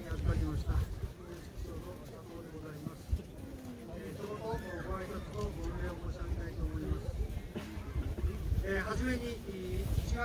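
A man speaks formally into a microphone, heard through loudspeakers outdoors.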